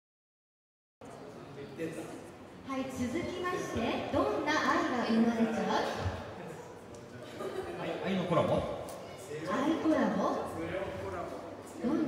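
A man talks casually in a large echoing hall.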